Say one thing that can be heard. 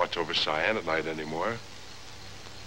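A man speaks with feeling, close by.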